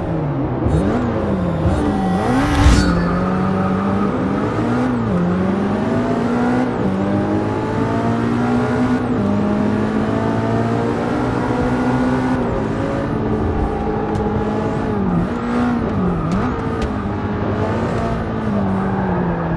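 A racing car engine revs hard, rising and falling as gears shift.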